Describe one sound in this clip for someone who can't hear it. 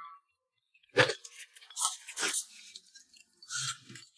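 A woman slurps noodles.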